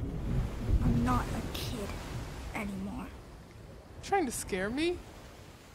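A boy calls out in alarm, close by.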